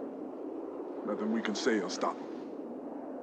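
A young man speaks in a tense voice.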